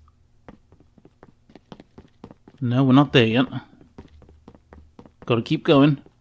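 Footsteps tap lightly on a wooden floor.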